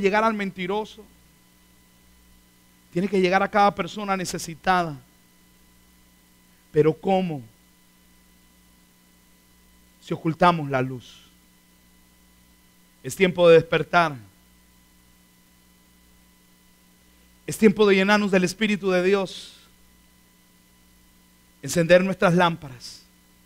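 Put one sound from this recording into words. A man speaks with animation through a microphone in short bursts.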